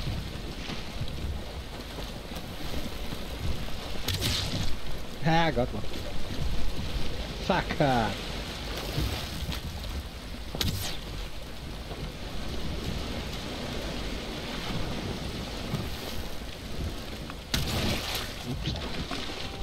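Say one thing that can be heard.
Wind blows steadily into a sail.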